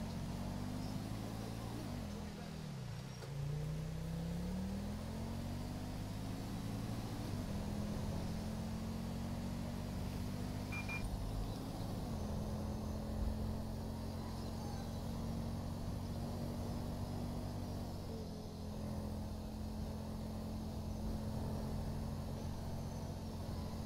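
A car engine hums and revs up and down as it drives.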